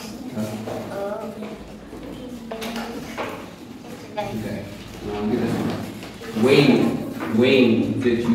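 A girl answers in a soft voice nearby.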